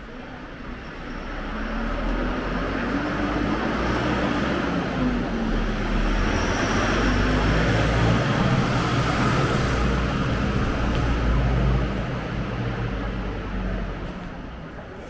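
A truck engine rumbles, growing louder as it drives past close by, then fading away.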